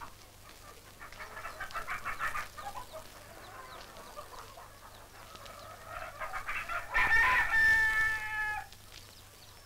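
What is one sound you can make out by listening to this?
Geese honk and cackle nearby.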